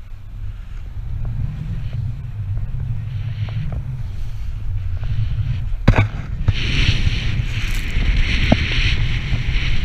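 A snowboard scrapes and hisses as it carves through snow.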